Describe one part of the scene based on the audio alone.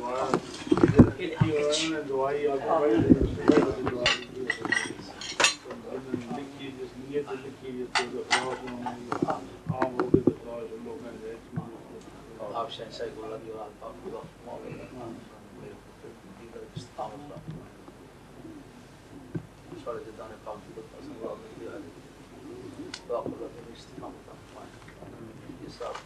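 An elderly man recites a prayer aloud.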